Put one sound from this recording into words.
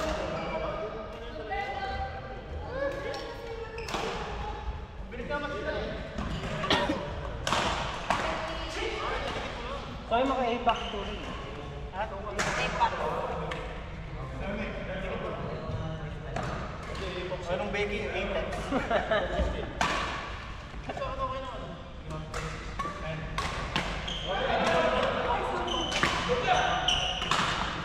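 Young men and women chatter and call out across the hall.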